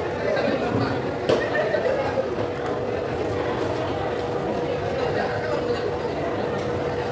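A crowd murmurs at a distance.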